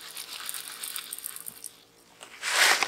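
Salt crystals pour and rattle into a small container.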